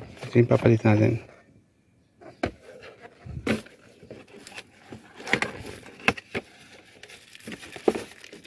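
A cardboard box scrapes and rustles as it is handled.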